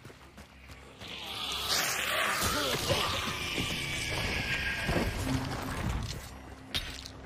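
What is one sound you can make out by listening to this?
A creature attacks with a loud, rushing crash that slowly dies away.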